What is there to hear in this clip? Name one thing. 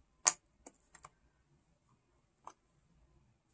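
Small makeup pans click softly as fingers tap and lift them.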